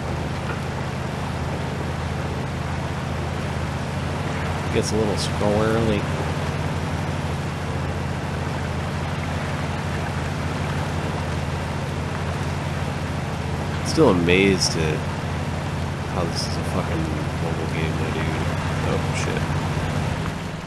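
Tyres splash through mud and water.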